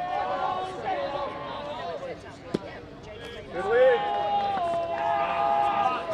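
Young men shout and cheer from a distance outdoors.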